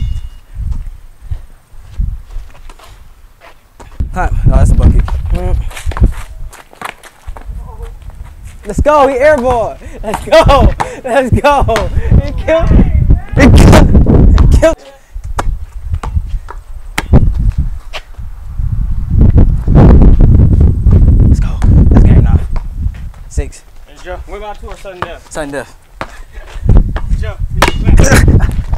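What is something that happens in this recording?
A basketball bounces on concrete.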